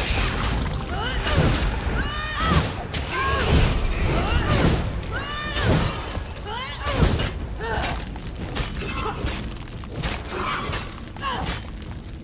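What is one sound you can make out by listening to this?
A giant spider shrieks and hisses.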